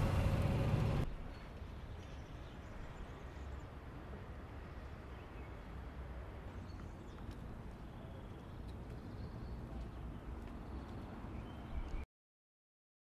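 Quiet street noise carries outdoors.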